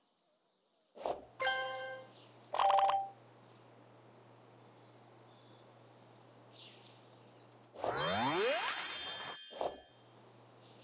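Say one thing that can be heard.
A game chimes with bright jingles when a menu opens.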